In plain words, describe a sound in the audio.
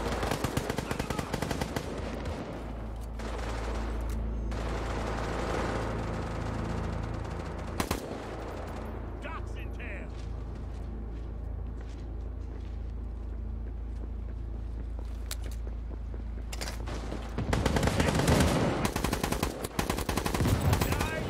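A rifle fires rapid bursts of loud shots nearby.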